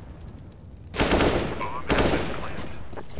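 Rifle shots ring out in short bursts.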